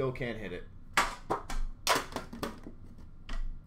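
A hard plastic card case clicks and knocks against glass.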